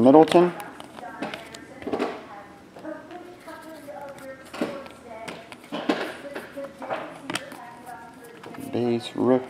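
Stiff trading cards rustle and flick as they are sorted through by hand.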